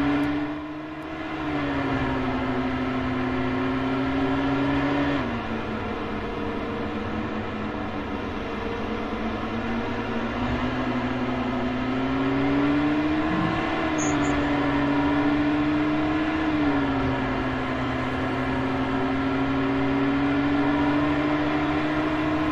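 An aircraft engine drones steadily, its pitch rising and falling slightly.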